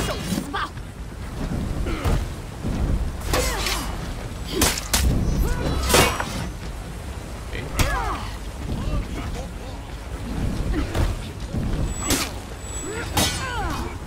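Metal swords clash and strike in a fight.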